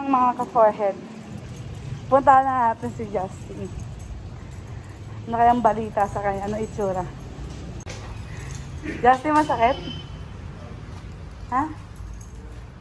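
A young woman talks close to the microphone in a lively, animated way.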